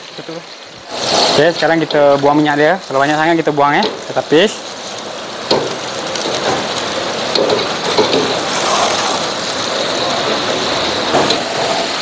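A wire strainer scrapes against a wok.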